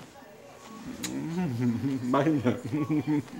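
A middle-aged man speaks nearby with a laugh.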